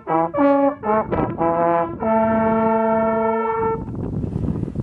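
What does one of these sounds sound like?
Hunting horns play a short fanfare outdoors.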